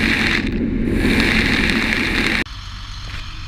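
Water churns and splashes in a raceway.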